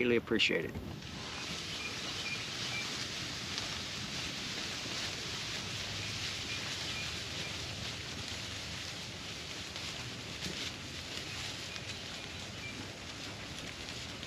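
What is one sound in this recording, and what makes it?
Goats rustle through tall grass as they walk.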